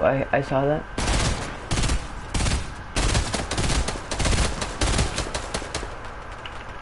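Rapid gunshots ring out in quick bursts.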